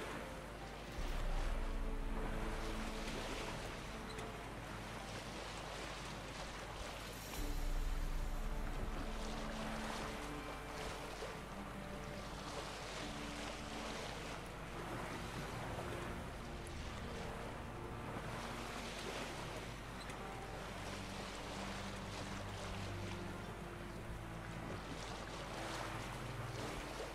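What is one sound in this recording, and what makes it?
Water splashes and laps against a small sailing boat's hull.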